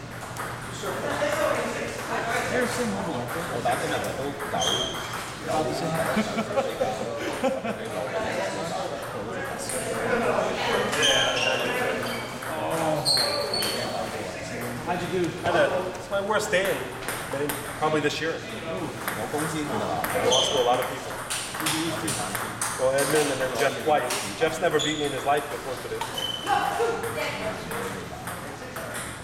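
A ping-pong ball clicks sharply against paddles and a table in a large echoing hall.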